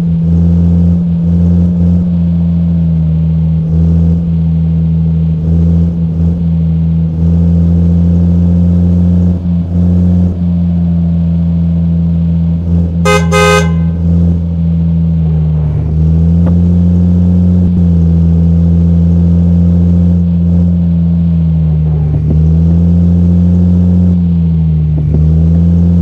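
A heavy engine drones steadily, its pitch rising and falling with speed.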